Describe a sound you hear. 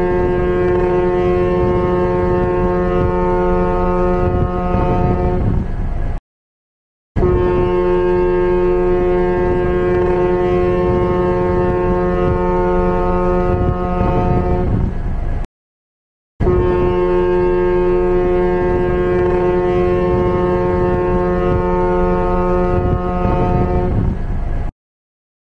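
A ship's horn blows long, deep blasts with short pauses between them.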